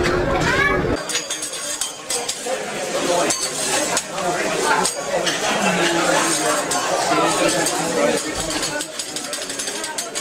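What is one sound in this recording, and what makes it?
A metal spatula scrapes and clinks on a griddle.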